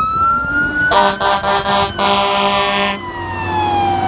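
A fire engine air horn blasts loudly.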